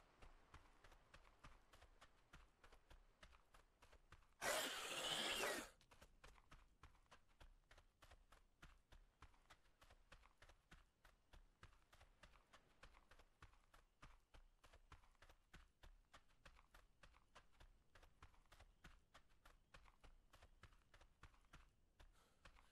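Footsteps run quickly through grass and undergrowth.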